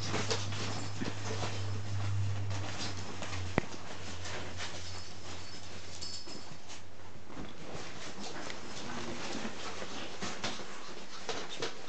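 Small dogs' paws patter and scratch on a wooden floor.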